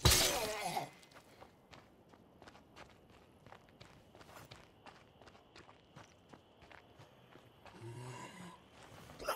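Footsteps run quickly over gravel.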